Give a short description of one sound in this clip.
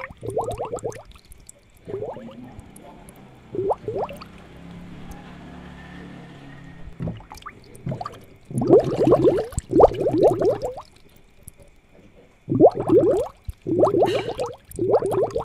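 Air bubbles gurgle softly in water.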